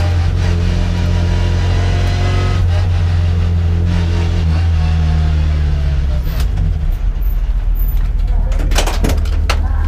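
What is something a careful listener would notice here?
A classic Mini race car engine idles with a rough, low drone, heard from inside the cabin.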